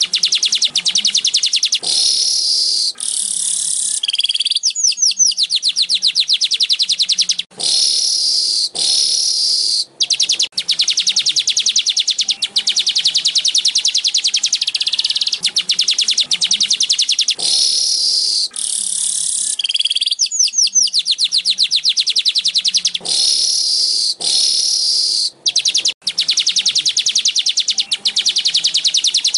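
A small bird sings a fast, buzzing, chattering song close by.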